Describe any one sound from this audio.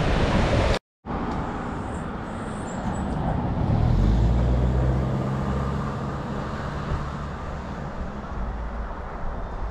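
Wind gusts outdoors with a low rumble.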